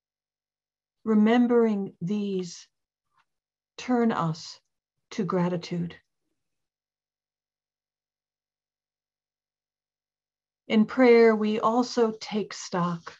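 An older woman speaks calmly and slowly, close to a microphone, with long pauses.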